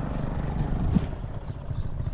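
A fishing reel clicks sharply.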